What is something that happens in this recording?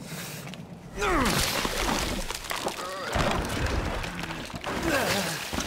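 A heavy blow thuds into flesh.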